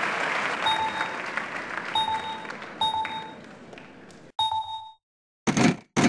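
Short electronic beeps chime as game buttons are pressed.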